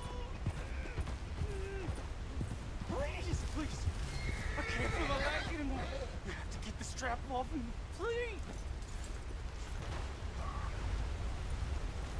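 A horse's hooves thud softly on grass.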